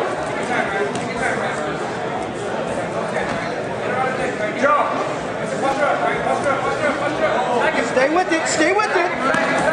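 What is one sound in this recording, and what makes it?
A crowd of men and women shouts and cheers in an echoing hall.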